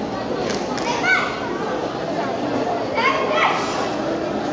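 A young boy shouts sharply as he strikes, echoing in a large hall.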